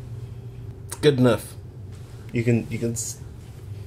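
A young man speaks up close with animation.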